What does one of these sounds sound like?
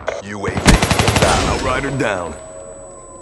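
Rapid gunfire crackles at close range.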